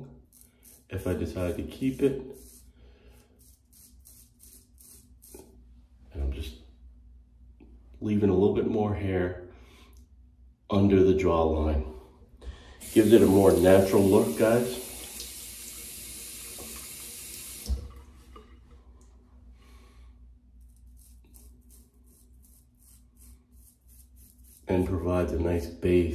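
A razor scrapes over stubble in short strokes.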